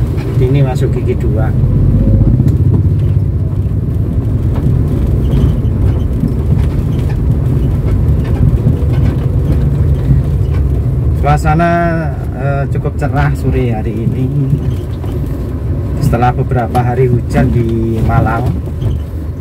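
A car engine hums and tyres rumble on the road.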